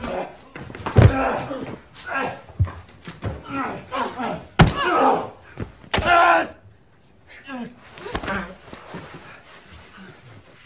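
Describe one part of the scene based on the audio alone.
A woman cries out and shouts in distress, close by.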